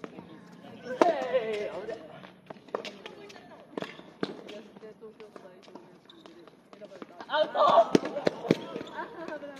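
A tennis ball is struck with a racket again and again.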